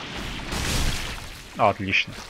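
A huge creature crashes heavily to the ground with a deep rumble.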